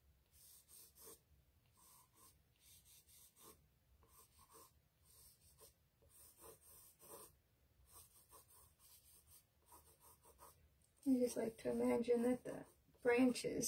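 A pencil scratches and rubs on paper in short strokes.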